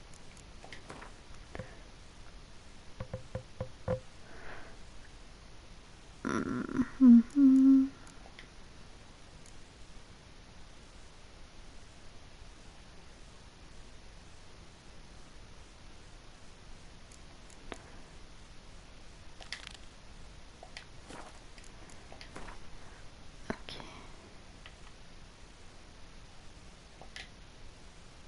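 Soft menu clicks and swishes sound now and then as menu pages change.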